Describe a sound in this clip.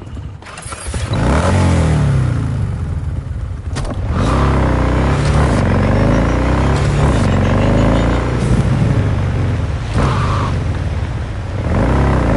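A motorcycle engine starts and roars, revving up and down as the bike speeds along.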